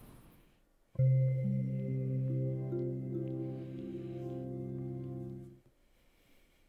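A low electronic chord rings out steadily, then stops.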